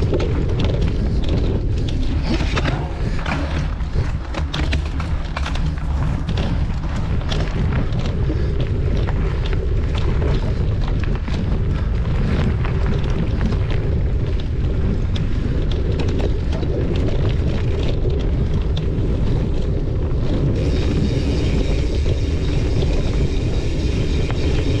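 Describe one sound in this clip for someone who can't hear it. Bike tyres crunch and rattle over a dirt trail.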